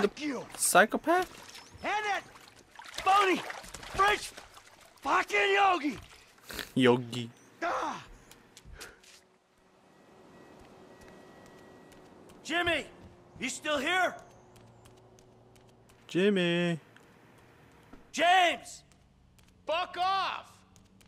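A man speaks angrily and loudly.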